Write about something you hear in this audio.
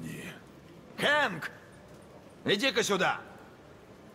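A middle-aged man shouts angrily.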